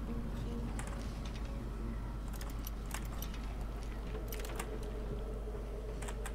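Metal lock picks scrape and click inside a lock.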